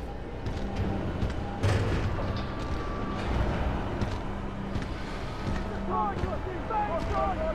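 Heavy metal footsteps thud at a steady pace.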